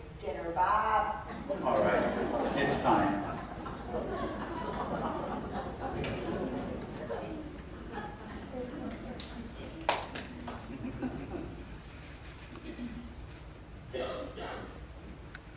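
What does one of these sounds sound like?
A woman speaks on a stage in a large echoing hall.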